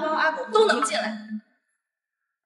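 A young woman speaks close by with a sharp, scolding tone.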